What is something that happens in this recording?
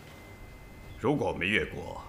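A second man answers in a deep, calm voice.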